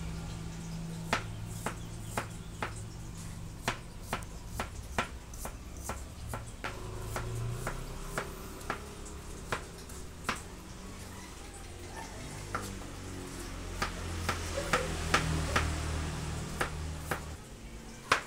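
A knife chops rapidly on a cutting board.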